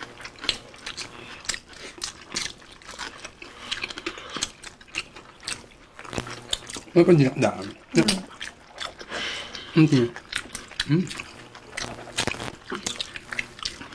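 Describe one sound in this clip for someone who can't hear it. Fingers squish and rustle through rice and food.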